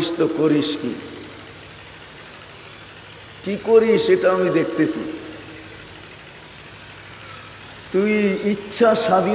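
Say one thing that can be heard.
An elderly man preaches with emotion through a microphone, in bursts separated by pauses.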